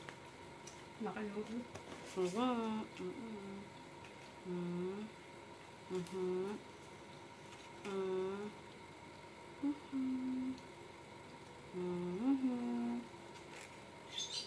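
A young woman hums a tune softly close by.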